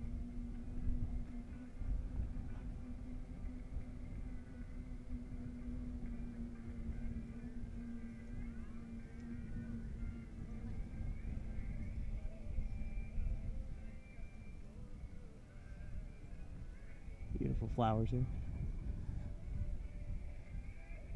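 Wind buffets and rumbles outdoors throughout.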